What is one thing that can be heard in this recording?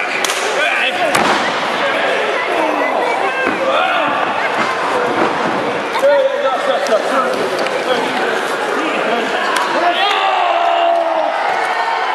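A crowd cheers and chatters in a large echoing hall.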